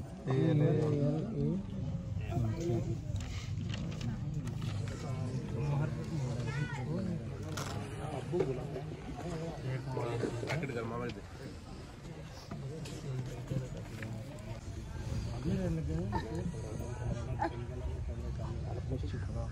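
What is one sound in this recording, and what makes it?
Several men talk over each other nearby in a crowd.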